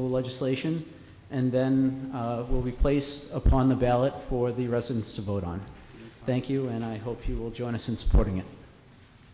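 A young man reads out into a microphone.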